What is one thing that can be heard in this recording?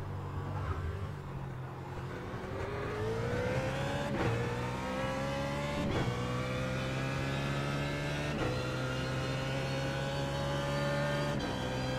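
A racing car engine revs hard, rising in pitch through each gear and dropping sharply at every gear change.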